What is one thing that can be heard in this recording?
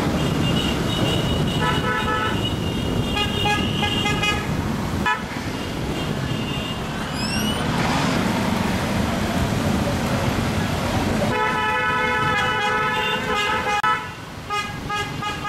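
Several motorcycle engines rumble and drone close by.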